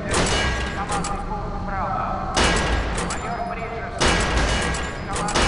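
A gun fires single loud shots that ring out with an echo.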